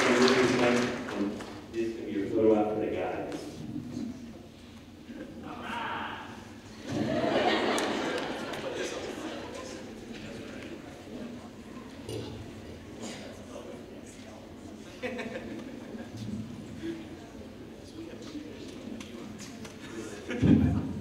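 A young man speaks calmly into a microphone in a large echoing hall.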